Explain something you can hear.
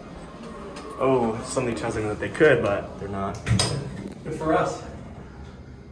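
Elevator doors slide and thud shut.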